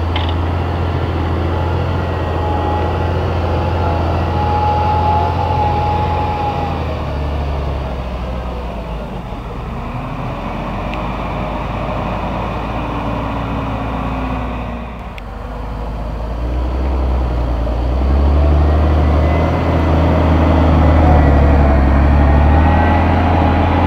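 A plough churns through soil.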